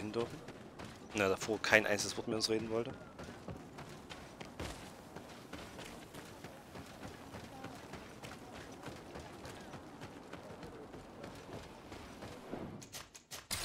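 Footsteps run over dirt and stone.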